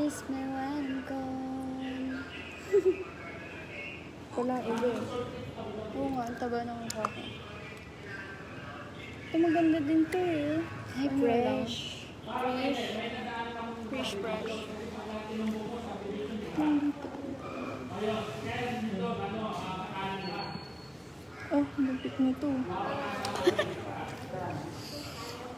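A young woman talks animatedly close to a phone microphone.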